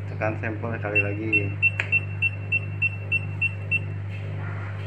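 An electronic scale beeps in short, evenly spaced pips.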